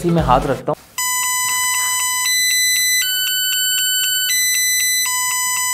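A small electronic device plays a bright, steady electronic tune that changes notes every second or so.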